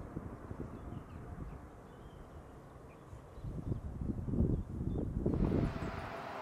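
A propeller plane's engines drone on a runway.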